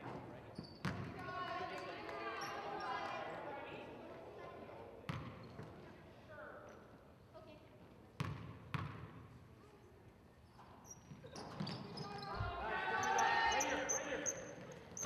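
Young women shout and call out to each other across the court.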